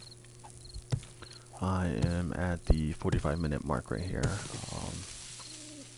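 A pickaxe strikes packed earth with dull thuds.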